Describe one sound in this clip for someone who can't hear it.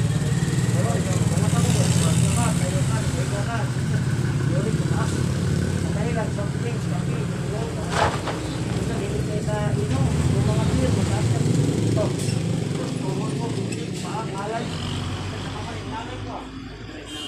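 A steady low engine rumble and traffic noise are heard outdoors.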